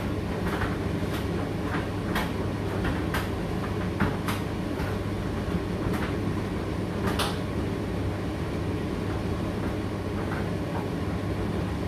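Clothes tumble and thud inside a tumble dryer drum.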